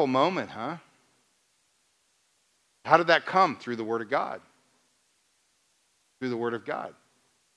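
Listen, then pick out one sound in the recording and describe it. A middle-aged man speaks with animation through a microphone, with long pauses.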